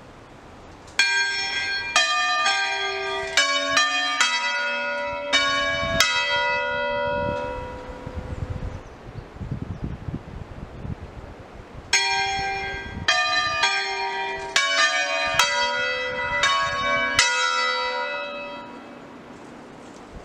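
Church bells ring out in quick strokes, with their tones ringing on and fading between peals.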